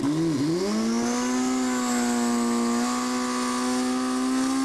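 A motorcycle engine roars at high, steady revs.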